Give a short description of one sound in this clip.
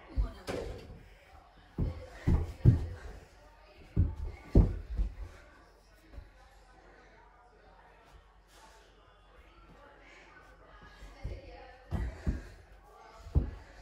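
A ball thuds and bounces in a room.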